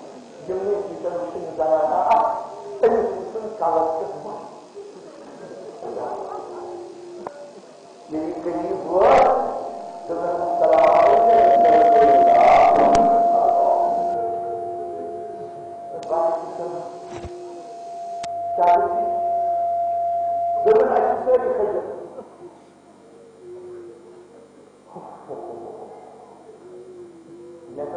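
An elderly man speaks with emotion into a microphone.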